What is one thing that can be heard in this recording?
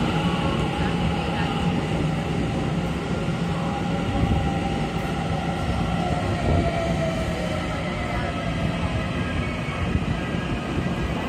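An electric train rumbles steadily along the tracks.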